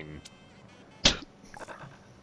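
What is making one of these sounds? A playing card snaps down onto a pile.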